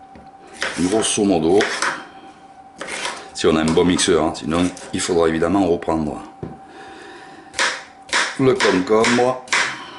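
A knife chops vegetables on a cutting board.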